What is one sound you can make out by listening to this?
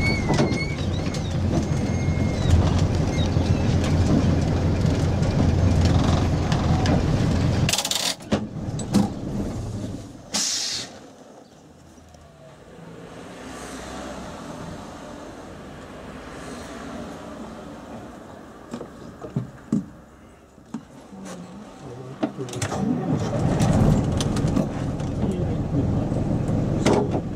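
An old bus engine rumbles loudly while driving.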